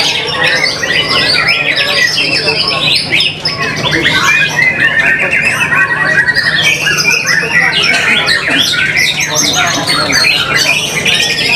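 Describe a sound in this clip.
A songbird sings loud, rapid, varied chirping phrases close by.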